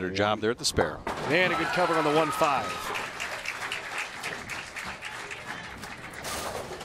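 A crowd cheers and applauds loudly in an echoing hall.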